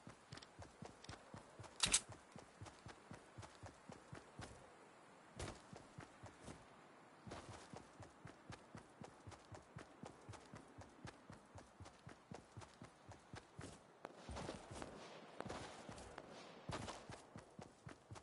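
Footsteps patter quickly and steadily over grass.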